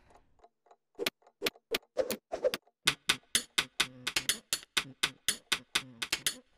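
A pencil scrapes rhythmically against a sharpener.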